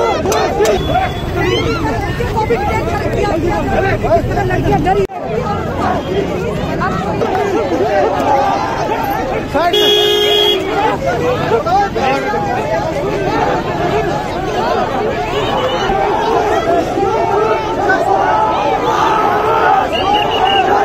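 A crowd of young men and women shout and clamour loudly outdoors.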